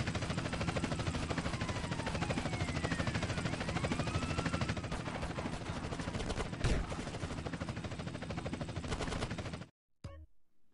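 A helicopter's rotor roars overhead.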